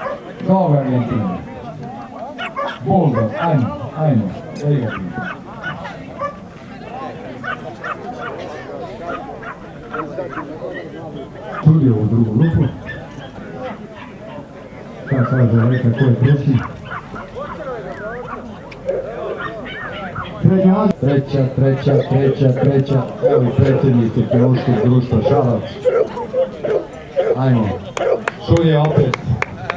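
A crowd of people chat outdoors.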